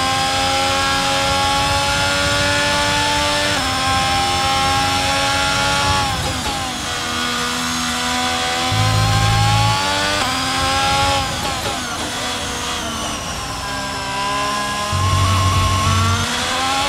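A Formula One car's turbo hybrid V6 screams at high revs, shifting up through the gears.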